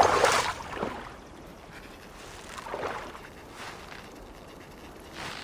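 Water splashes softly in short bursts.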